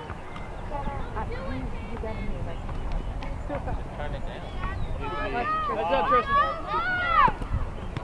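A soccer ball thuds off a child's foot.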